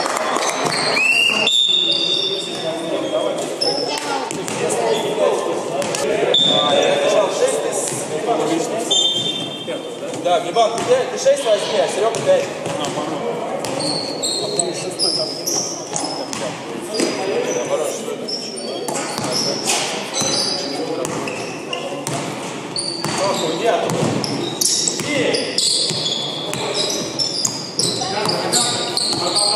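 Men call out to each other in a large echoing hall.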